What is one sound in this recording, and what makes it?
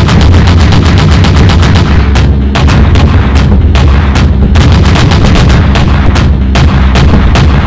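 Twin anti-aircraft guns fire in rapid bursts.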